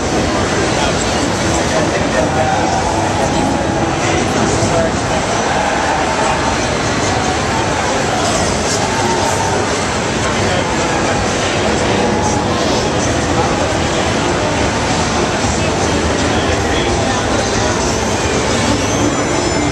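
Game music and sound effects play from a loudspeaker.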